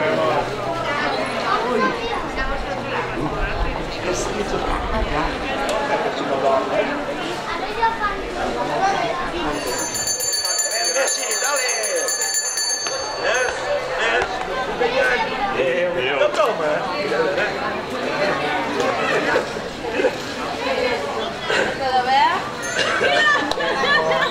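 Children and adults chatter in a busy street.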